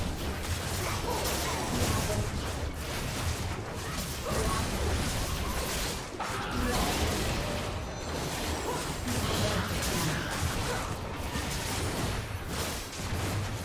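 Magic blasts and hits crackle and boom in a fast battle.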